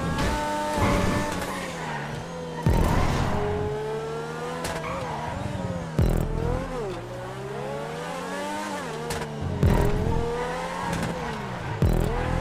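A sports car engine revs high and shifts gears.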